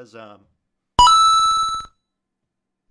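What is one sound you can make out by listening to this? An alert chime rings out briefly.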